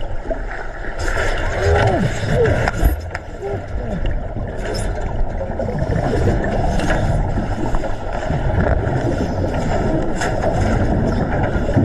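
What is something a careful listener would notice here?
A shark thrashes and knocks against a metal cage.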